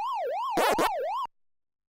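An arcade game's quick blips chirp briefly.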